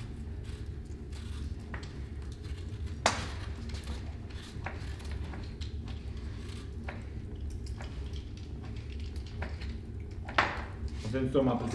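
A peeler scrapes the skin off an apple.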